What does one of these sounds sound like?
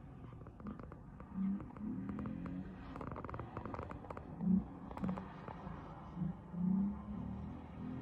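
A car engine revs and roars as the car speeds around a track.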